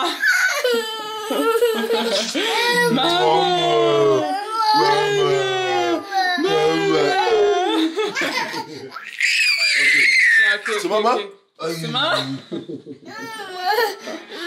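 A toddler cries and wails loudly up close.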